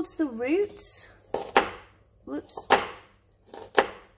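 A knife cuts through an onion onto a cutting board.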